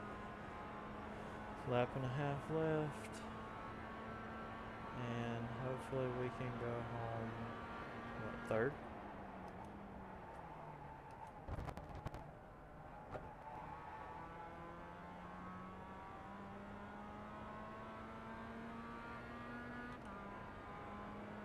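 A racing car engine drones steadily, its pitch rising and dropping with gear changes.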